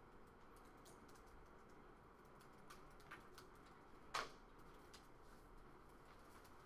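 Laptop keys click softly now and then.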